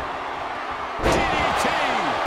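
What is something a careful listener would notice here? A wrestler's body slams onto a ring with a heavy thud.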